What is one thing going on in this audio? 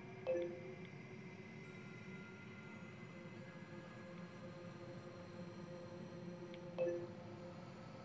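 A short electronic chime sounds twice.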